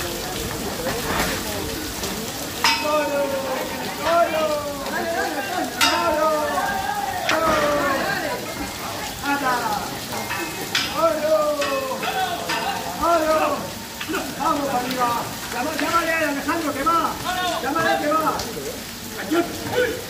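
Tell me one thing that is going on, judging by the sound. A crowd of men and women shout and call out excitedly close by.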